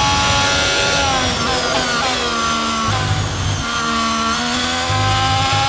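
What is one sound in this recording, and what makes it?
A Formula 1 racing car engine drops in pitch, downshifting for a corner.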